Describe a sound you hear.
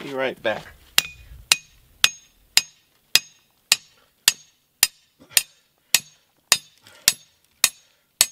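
A hammer strikes a metal bar in steady, regular blows.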